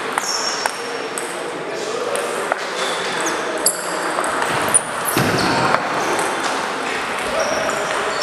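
Footsteps tap on a wooden floor in a large echoing hall.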